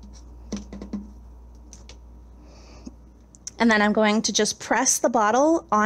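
A plastic cup dabs and taps lightly on a paper plate.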